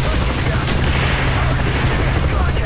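An explosion bursts nearby.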